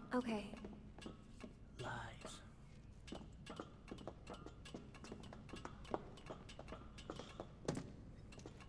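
Footsteps clank on metal ladder rungs in a quick series.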